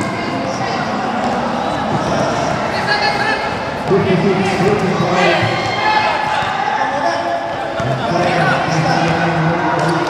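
Basketball sneakers squeak and thud on a hard court.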